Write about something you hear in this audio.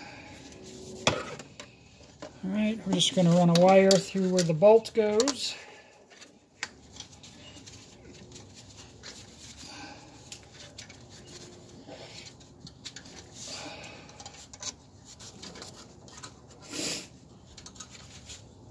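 Metal tools clink and tap against car parts.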